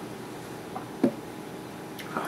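A glass is set down on a wooden table with a soft knock.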